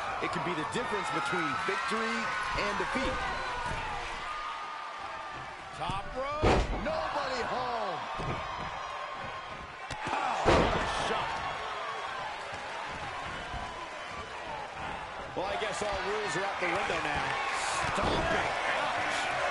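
A large crowd cheers and roars steadily in an arena.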